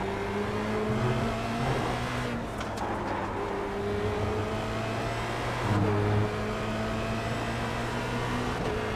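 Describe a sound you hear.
A racing car engine drones steadily at high revs, its pitch rising and dropping with each gear shift.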